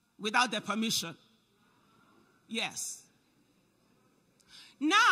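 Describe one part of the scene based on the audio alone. A young woman speaks with emphasis into a microphone, with short pauses.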